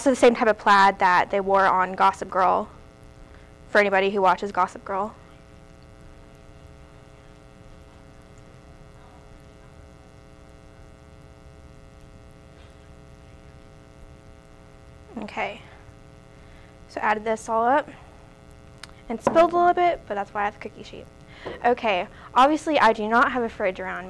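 A young woman talks calmly into a close microphone.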